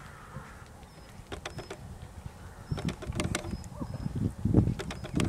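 A horse canters, its hooves thudding softly on loose ground.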